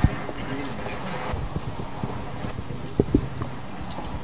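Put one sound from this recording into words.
Objects knock and clatter on a table nearby.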